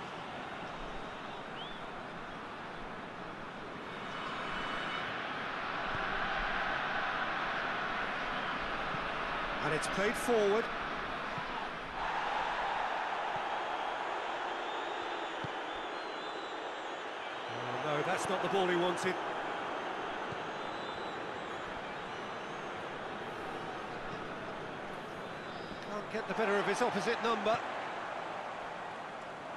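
A stadium crowd roars and murmurs steadily, swelling at times.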